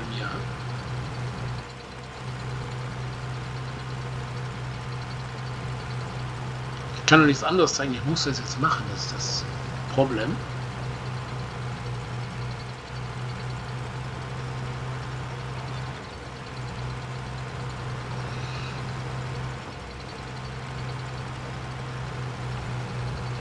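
A diesel tractor engine drones under load.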